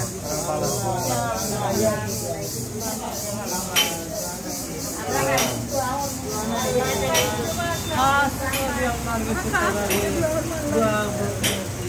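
A group of men and women murmur along in prayer.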